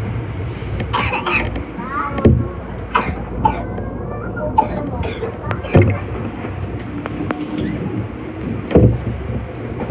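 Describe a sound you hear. Metal knocks and clatters as train wheels roll over track joints.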